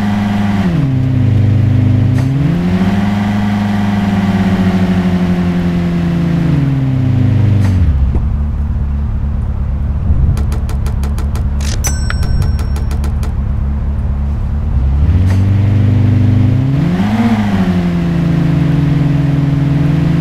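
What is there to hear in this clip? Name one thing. A car engine hums and revs, rising and falling in pitch.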